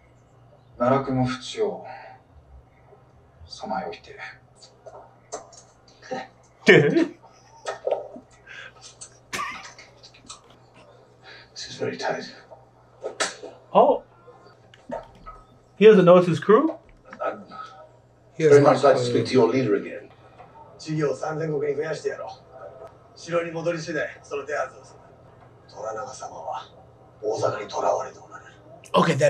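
A second man speaks close to a microphone.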